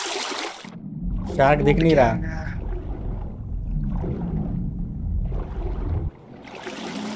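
Water rumbles and gurgles, muffled as if heard underwater.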